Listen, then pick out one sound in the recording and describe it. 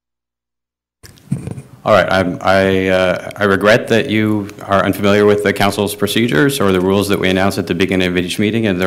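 A man speaks calmly into a microphone, heard over loudspeakers in a large room.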